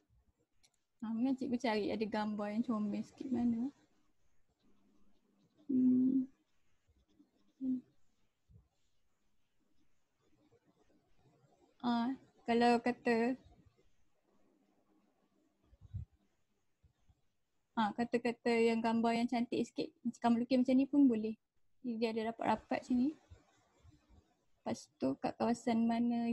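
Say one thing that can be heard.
A woman speaks calmly over an online call, explaining in pauses.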